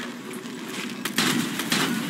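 A rifle shot cracks sharply.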